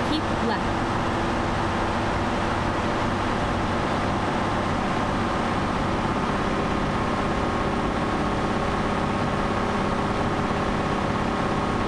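A truck engine hums steadily while driving on a highway.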